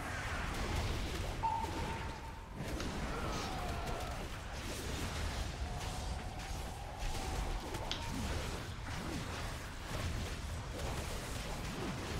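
Weapons strike a monster with heavy hits.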